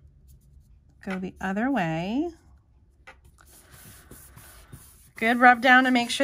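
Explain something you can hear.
Paper rustles softly as hands press a folded card.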